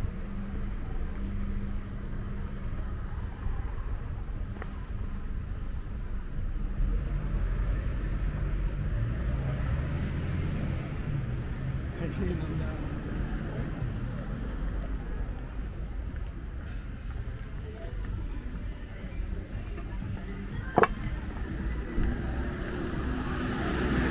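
Low rumbling noise of a city street at night fills the air.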